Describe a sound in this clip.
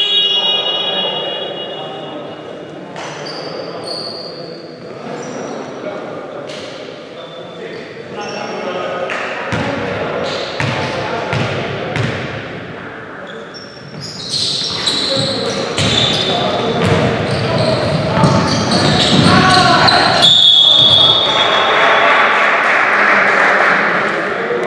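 Sneakers squeak on a gym floor in a large echoing hall.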